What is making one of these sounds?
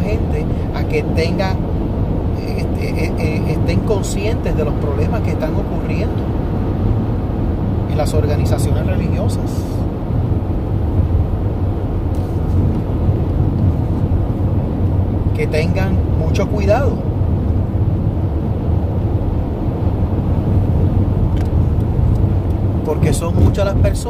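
A car engine and road noise rumble low and steady.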